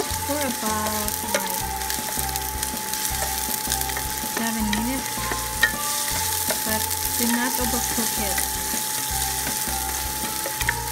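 Sliced onions sizzle in oil in a pan.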